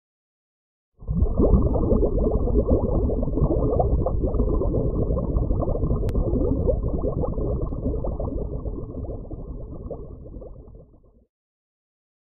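Bubbles rush and gurgle underwater, then slowly fade away.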